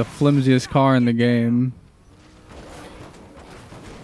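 A car thuds into bodies.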